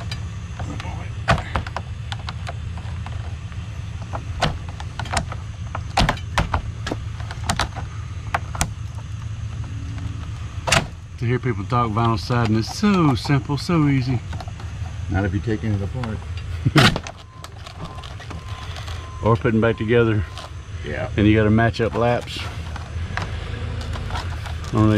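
A tool taps and clicks against plastic siding.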